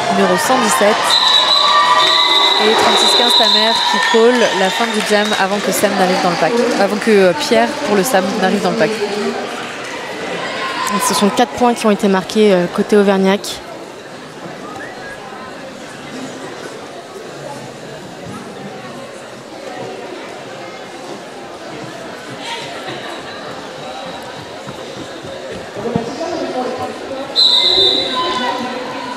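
A crowd of men and women chatter and call out in a large echoing hall.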